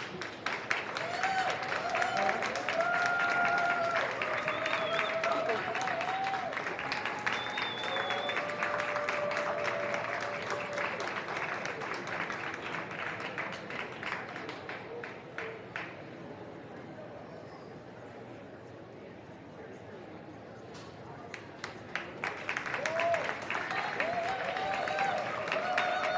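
People in a crowd cheer and whoop.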